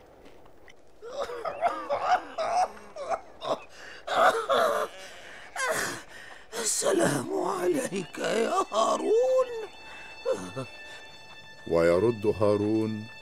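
An elderly man speaks calmly.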